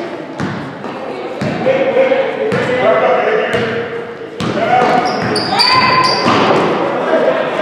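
Young men shout and call out to each other across the hall.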